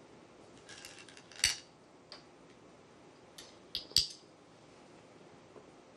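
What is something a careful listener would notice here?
A game stone clicks down onto a wooden board.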